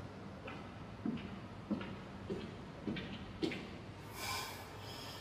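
Footsteps walk away on a hard floor.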